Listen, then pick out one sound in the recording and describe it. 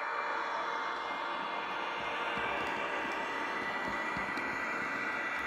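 Model train wheels click over rail joints.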